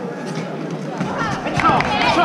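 Young fighters shout loudly as they spar.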